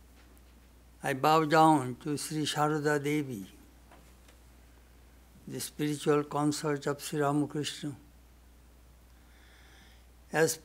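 An elderly man reads out slowly and calmly into a microphone, with pauses.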